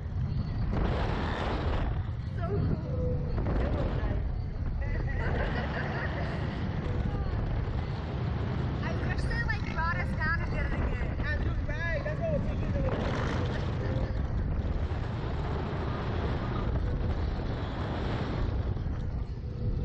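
Wind rushes past the microphone.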